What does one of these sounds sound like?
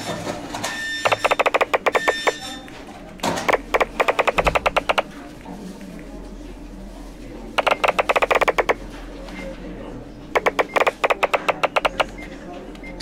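Sheets of paper pile up in quick bursts of rapid soft pops.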